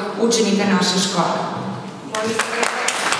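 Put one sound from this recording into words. A woman speaks into a microphone, heard through loudspeakers.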